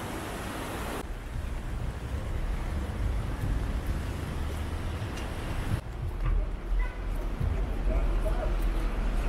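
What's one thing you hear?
Tyres hiss on a wet road as a car passes.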